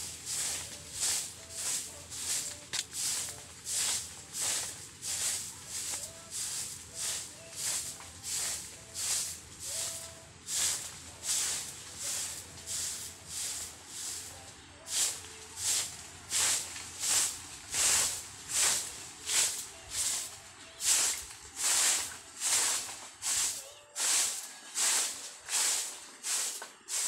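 A broom sweeps leaves and dirt on the ground in quick, rhythmic strokes.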